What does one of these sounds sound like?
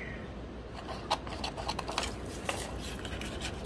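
Scissors snip through card.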